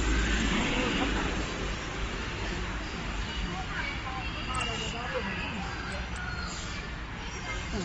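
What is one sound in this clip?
A woman talks nearby outdoors.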